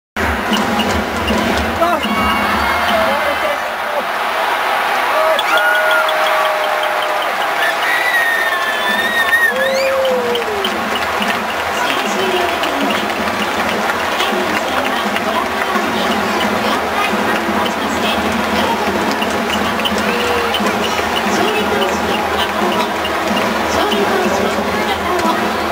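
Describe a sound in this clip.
A large crowd cheers and chants in a big echoing stadium.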